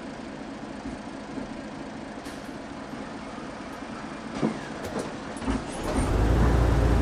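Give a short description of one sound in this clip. A bus engine idles quietly.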